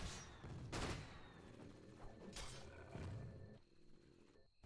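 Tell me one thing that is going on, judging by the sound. Fantasy battle sound effects whoosh and clash faintly.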